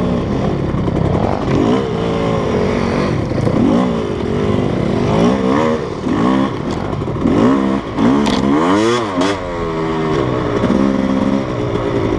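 A motorbike engine revs up and down, rising and falling in pitch.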